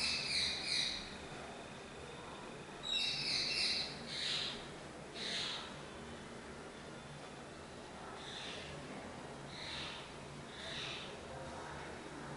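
A marker squeaks on a whiteboard in short strokes.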